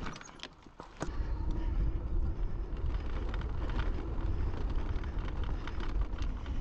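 Bicycle tyres rumble over a sandy dirt trail.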